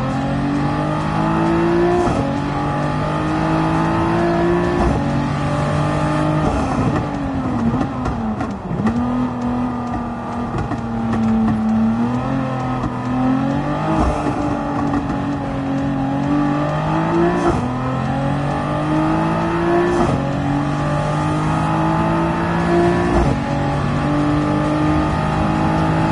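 A racing car engine revs hard, rising through the gears and dropping as it slows for corners.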